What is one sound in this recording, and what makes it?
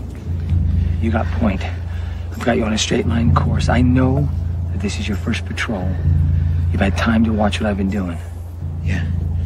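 A young man speaks urgently and close by.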